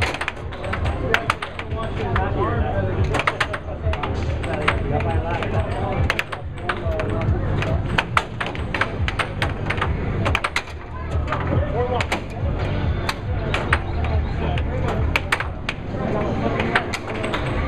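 Plastic pucks clack sharply against mallets and table rails.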